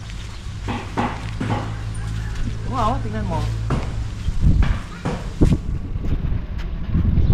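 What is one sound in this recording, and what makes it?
A man walks with footsteps on paving.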